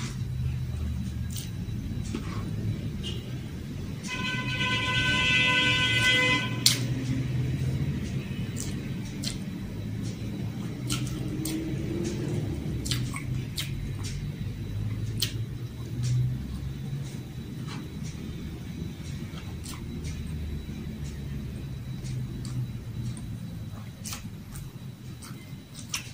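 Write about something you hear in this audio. A young woman chews food with wet smacking sounds close by.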